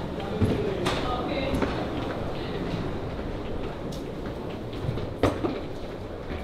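Suitcase wheels roll across a hard floor.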